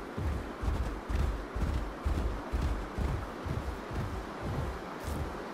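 Heavy footsteps of a large creature thud steadily on dry ground.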